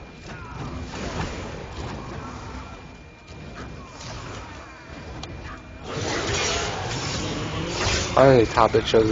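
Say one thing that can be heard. Magic strikes and hits thud and clang during a game fight.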